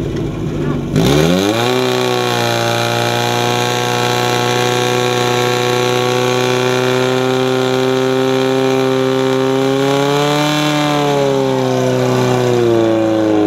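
A pump engine starts up, revs higher and runs loudly and steadily.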